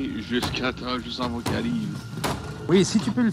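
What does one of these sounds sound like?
A hammer knocks on wooden planks.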